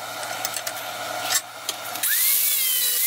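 A drawknife scrapes and shaves wood.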